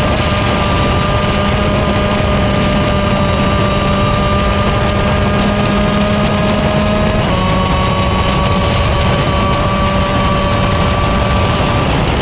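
A kart engine buzzes loudly and steadily up close, its pitch shifting slightly as it changes speed.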